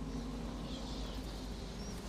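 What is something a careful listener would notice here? A flock of bats flutters and squeaks.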